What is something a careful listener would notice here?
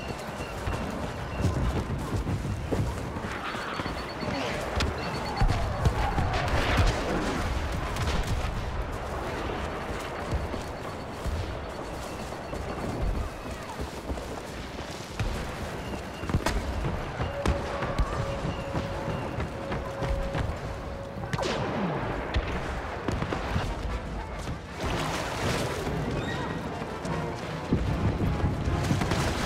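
Laser blasters fire in sharp bursts.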